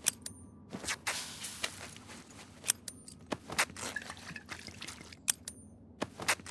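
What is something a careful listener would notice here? Short interface clicks and chimes sound as menu items are selected.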